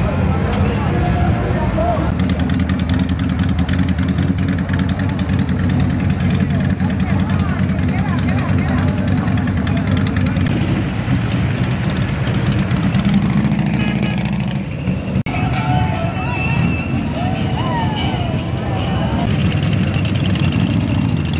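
Motorcycle engines rumble and idle loudly close by.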